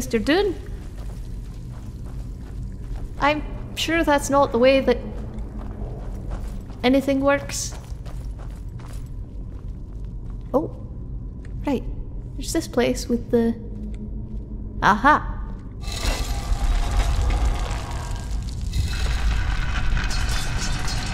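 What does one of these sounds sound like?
Footsteps crunch on stone and earth.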